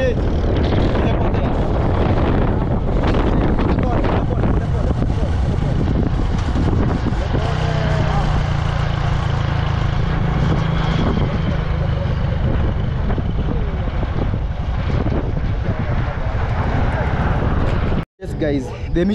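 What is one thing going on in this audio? A motorcycle engine drones steadily.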